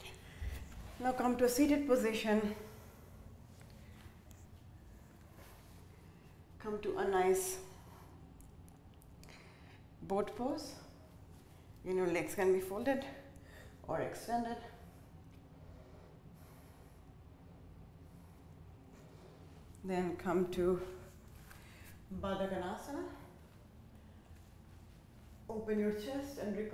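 A young woman speaks calmly and clearly nearby, pausing between phrases.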